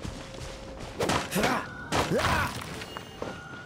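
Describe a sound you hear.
A sword strikes with heavy slashing impacts.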